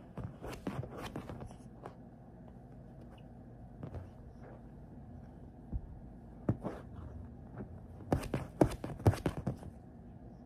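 A cockatoo flaps its wings.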